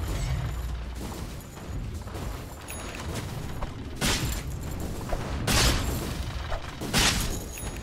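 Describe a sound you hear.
Magic blasts burst in short loud whooshes during a fight.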